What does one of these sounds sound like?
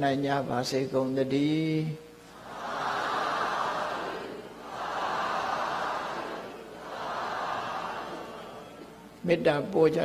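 An elderly man chants in a slow, drawn-out voice through a microphone.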